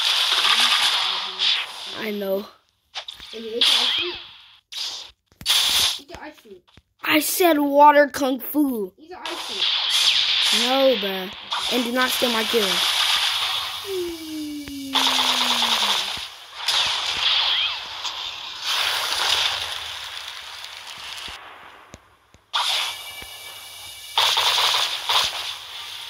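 Magic blasts whoosh and crackle in bursts.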